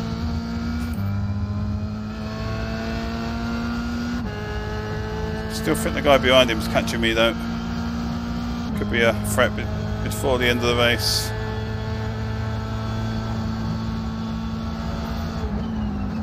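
A racing car engine drones steadily and shifts pitch with each gear change.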